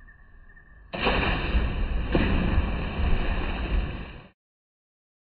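A person jumps into a pool with a loud splash.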